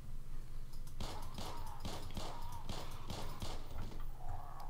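Pistol shots fire in quick succession, echoing in a large indoor space.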